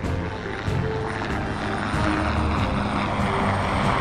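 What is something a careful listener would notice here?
A helicopter's rotor whirs overhead.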